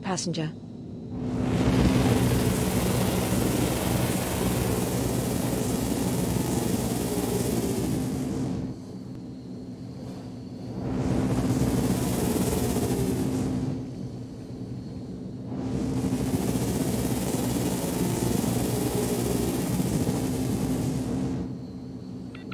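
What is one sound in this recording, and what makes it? A jet engine roars loudly, surging and then easing off several times.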